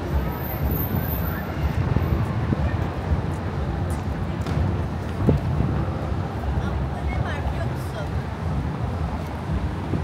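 Cars drive past on a nearby street.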